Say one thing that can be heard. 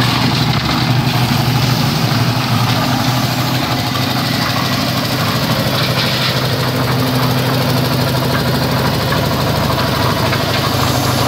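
A concrete mixer engine runs with a steady low drone.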